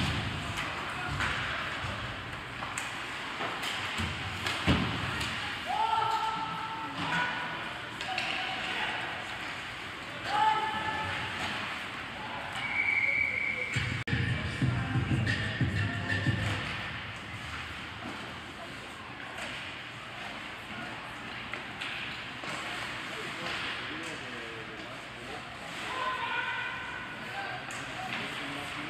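Ice hockey players skate and scrape across the ice in a large echoing arena.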